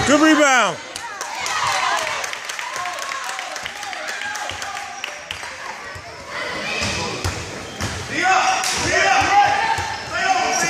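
A basketball bounces on a hard floor with thuds.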